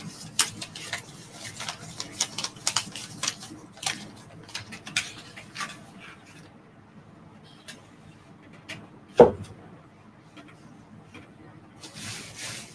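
Clothing rustles and small things knock close by as someone moves about.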